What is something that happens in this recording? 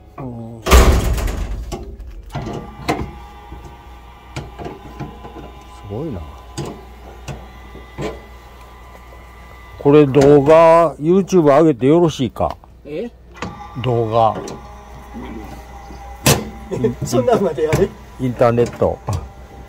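Metal parts clink and tap.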